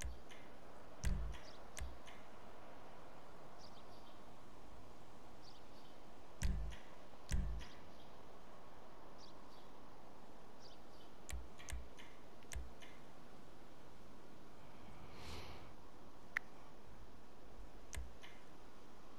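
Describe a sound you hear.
Short soft menu clicks and beeps sound now and then.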